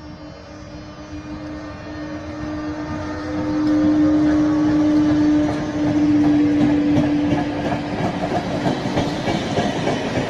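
Passenger coach wheels rumble and clatter over rail joints.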